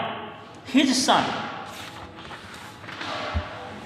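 A notebook slides and rustles across a wooden table.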